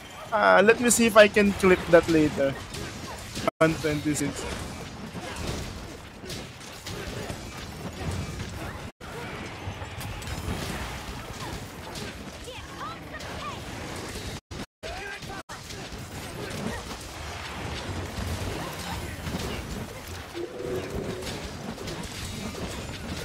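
Blades strike and fire bursts crackle in a fierce fight.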